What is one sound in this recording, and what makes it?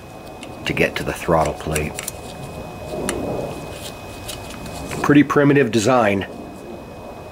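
Metal parts click and clink softly as they are handled.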